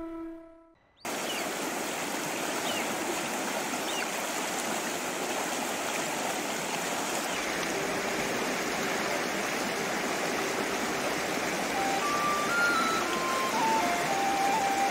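A shallow river rushes and splashes over stones.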